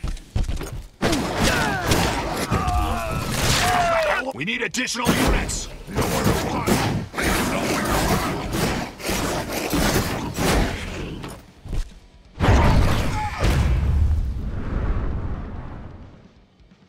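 Heavy blows and slashes strike a monster again and again.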